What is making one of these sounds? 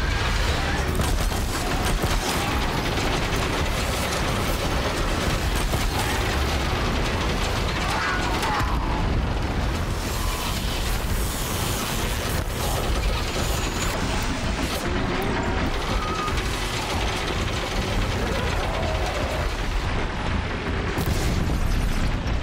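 A large mechanical creature screeches and clanks.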